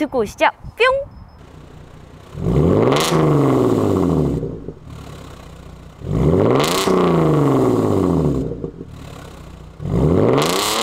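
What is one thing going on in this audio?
A car engine idles with a low rumble between revs.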